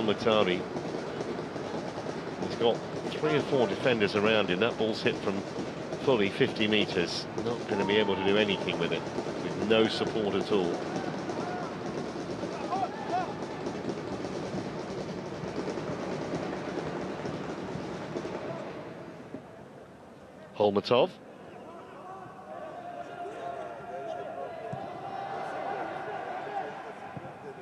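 A crowd murmurs and chants in a large open stadium.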